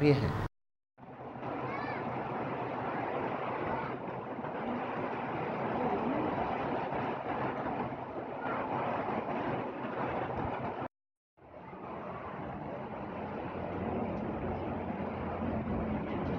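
Heavy rain pours steadily onto a street.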